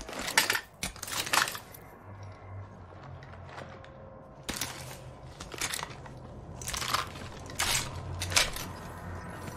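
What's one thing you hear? Rifle shots ring out in short, sharp bursts.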